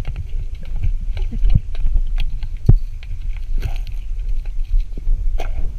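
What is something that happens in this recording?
A diver breathes through a regulator underwater, with bubbles rumbling and clicking close by.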